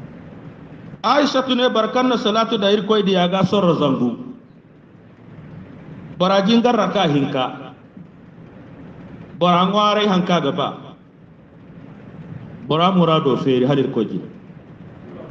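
A man chants a prayer in a slow, melodic voice, in short phrases with pauses between them.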